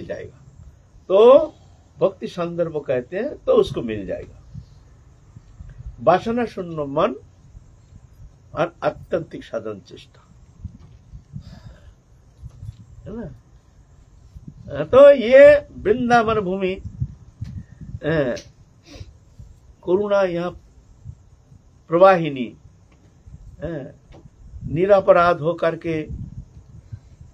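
An elderly man speaks with animation close to a microphone, in bursts with pauses.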